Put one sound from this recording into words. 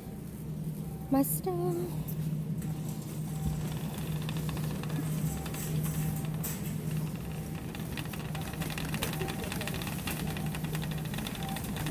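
A shopping cart rolls and rattles over a hard floor.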